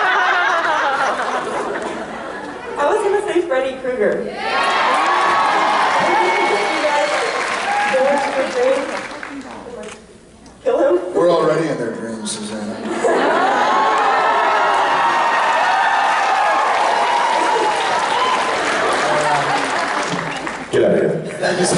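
A man talks with animation through a microphone over loudspeakers in a large hall.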